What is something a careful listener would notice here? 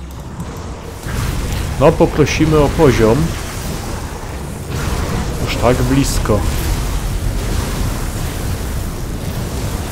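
Fiery spell blasts and explosions roar.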